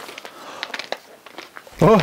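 Footsteps crunch on snow.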